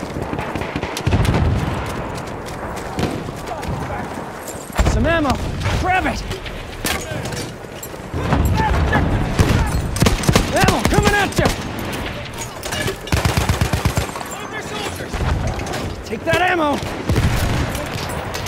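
A machine gun fires in rapid bursts close by.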